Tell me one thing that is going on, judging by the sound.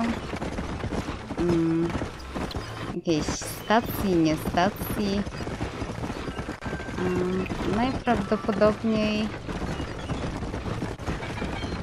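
Horse hooves clop steadily on dirt.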